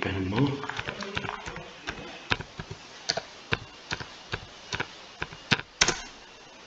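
Keyboard keys click in quick, uneven taps as someone types.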